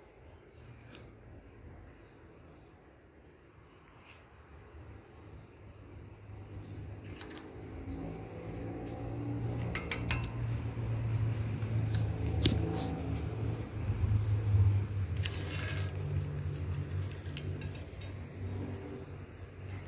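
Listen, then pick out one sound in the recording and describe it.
Plastic hangers click and scrape along a metal rail.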